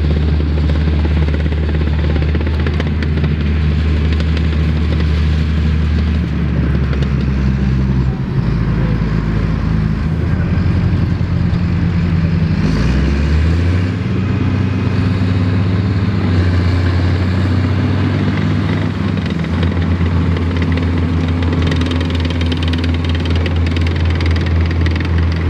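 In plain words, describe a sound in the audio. Metal tracks clatter and squeak as a tracked vehicle crawls over the ground.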